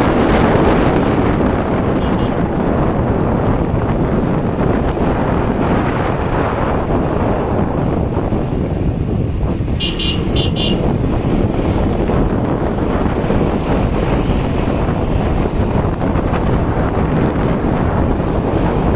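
Wind rushes and buffets loudly past a moving vehicle.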